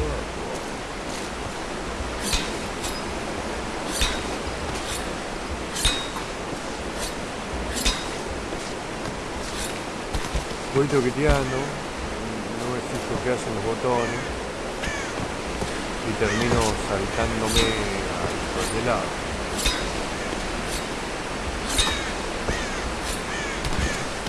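A climber's hands and feet scrape and knock against rock.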